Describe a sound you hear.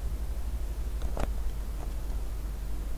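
A sheet of paper rustles as it is lifted and turned.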